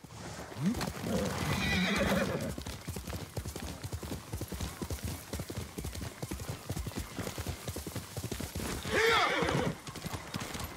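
A horse neighs loudly.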